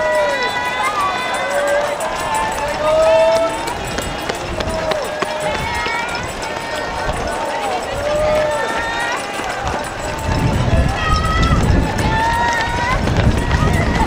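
Runners' footsteps patter on the road.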